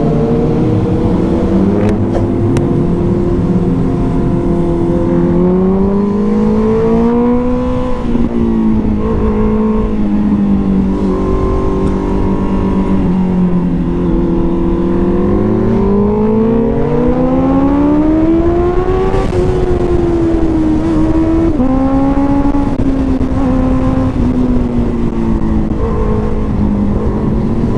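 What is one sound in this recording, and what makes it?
A motorcycle engine hums steadily, rising and falling in pitch as it speeds up and slows down.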